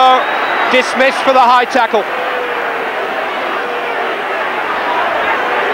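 A large stadium crowd murmurs and roars steadily.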